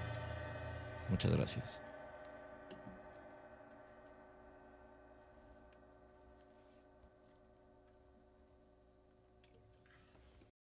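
An acoustic guitar strums a final chord that slowly rings out and fades.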